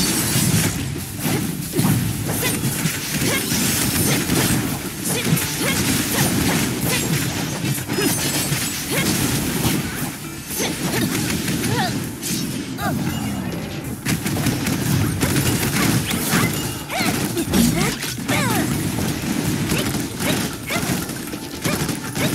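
Sword slashes and energy blasts clash with loud impacts in quick succession.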